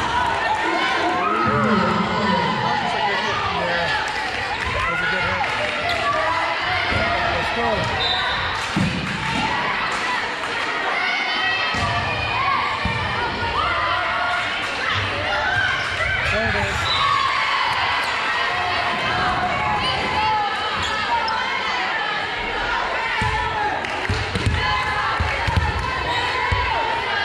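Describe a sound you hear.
Voices of spectators and players chatter throughout a large echoing gym.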